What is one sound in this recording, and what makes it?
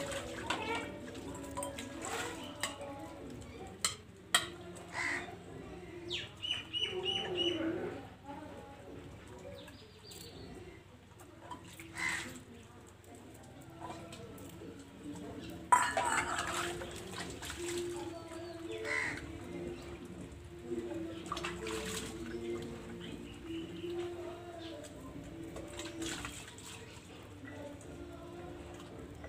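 Metal dishes clink and clatter as they are washed.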